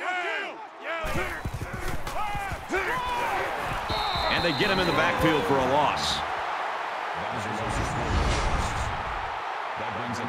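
A stadium crowd cheers and roars loudly.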